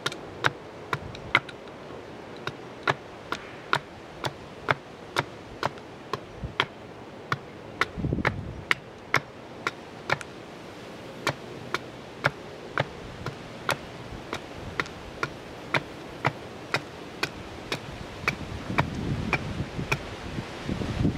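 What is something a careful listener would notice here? A hammer taps steadily on a metal rod.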